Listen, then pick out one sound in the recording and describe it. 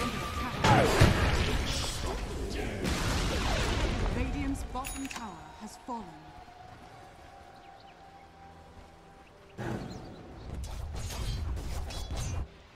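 Magic blasts and fiery explosions crackle and boom in a game battle.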